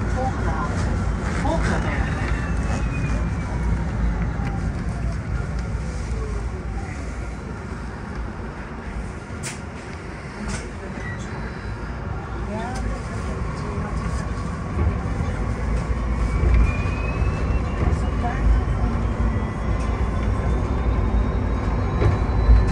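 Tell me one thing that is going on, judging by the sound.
A bus rattles and rumbles over the road.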